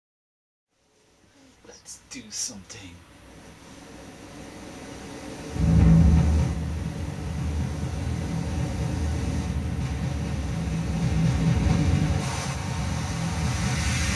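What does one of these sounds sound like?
Synthesizers and effects pedals play electronic noise with a deep droning bass.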